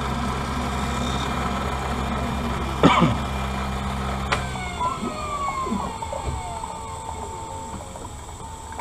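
A machine hums steadily, then winds down and stops.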